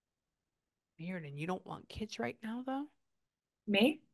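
A woman speaks close to a microphone, calmly and expressively.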